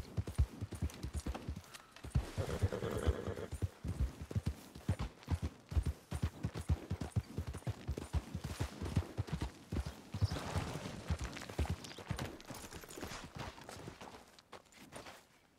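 A horse's hooves clop steadily over grass and rocky ground.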